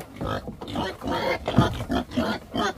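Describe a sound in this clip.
A wooden trough knocks against a plank floor.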